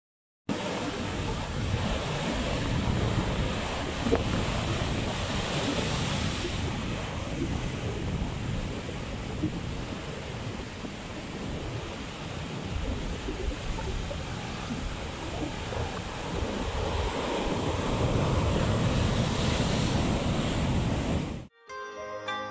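Heavy waves crash and roar against rocks.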